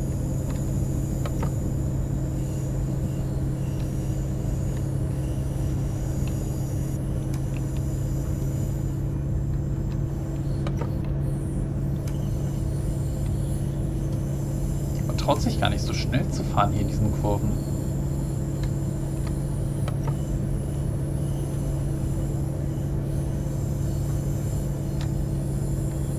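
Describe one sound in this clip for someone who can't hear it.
A diesel railcar drones as it runs along the track.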